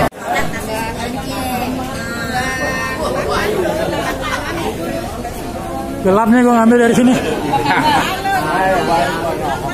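A man talks close by, loud and animated.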